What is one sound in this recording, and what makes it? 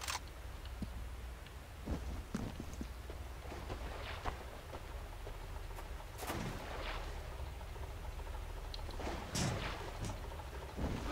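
Footsteps walk on hard ground.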